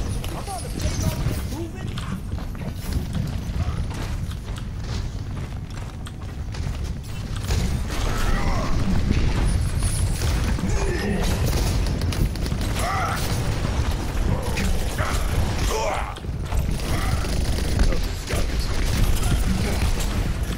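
Explosions thump loudly.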